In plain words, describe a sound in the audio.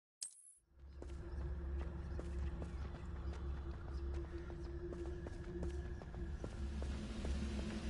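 Footsteps run quickly over gravel and stone.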